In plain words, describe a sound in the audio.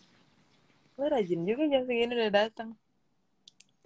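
A young woman speaks softly over an online call.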